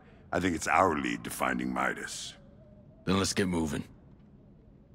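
A man speaks in a low, gruff voice close by.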